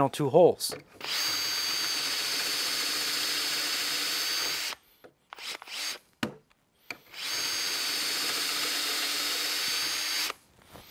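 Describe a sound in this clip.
A cordless drill whirs steadily as it drives into wood.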